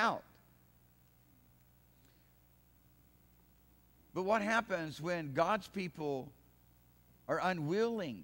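A middle-aged man speaks to an audience through a microphone, calmly and with emphasis, in short phrases with pauses.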